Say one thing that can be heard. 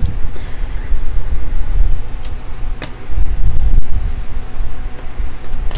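Playing cards slide and tap softly on a tabletop.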